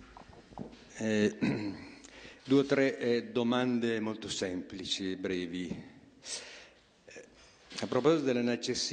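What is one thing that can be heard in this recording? An elderly man speaks into a handheld microphone, amplified in a large room.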